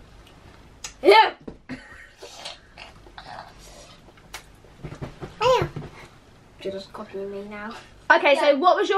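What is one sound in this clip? A young boy squeals and laughs close by.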